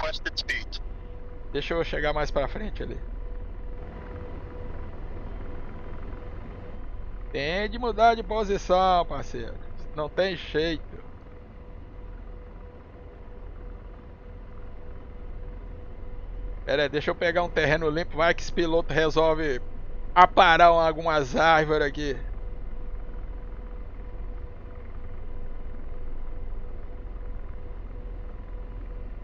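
A helicopter's engine and rotor drone steadily from inside the cockpit.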